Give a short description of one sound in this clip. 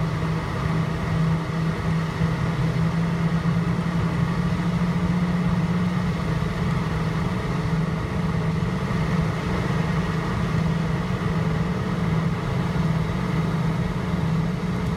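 Aircraft wheels rumble over a runway.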